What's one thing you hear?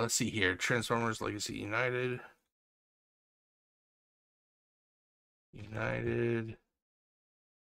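A middle-aged man speaks calmly into a close microphone, with pauses.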